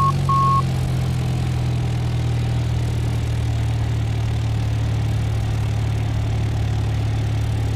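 A small propeller aircraft engine drones steadily.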